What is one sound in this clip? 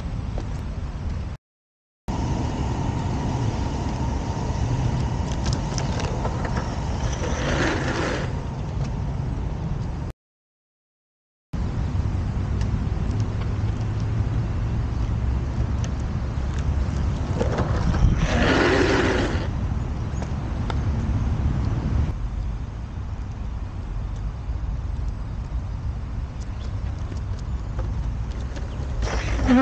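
Skateboard wheels roll over rough asphalt.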